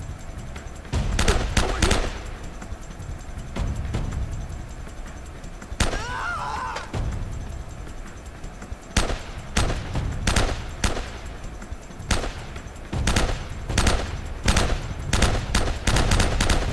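A rifle fires in short bursts of sharp shots.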